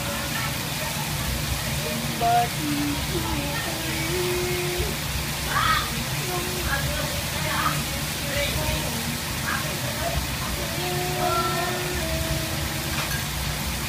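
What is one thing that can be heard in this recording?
A sauce bubbles and simmers in a pan.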